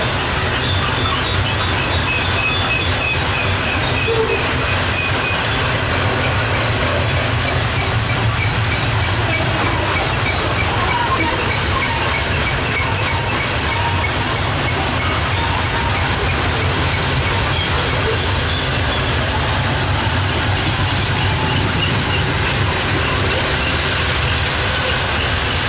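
Train wheels squeal and clack on the rails.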